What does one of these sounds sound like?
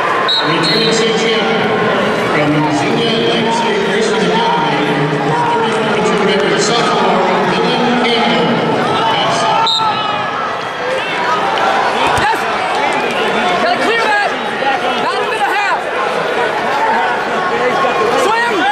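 A large crowd murmurs and cheers in a large echoing arena.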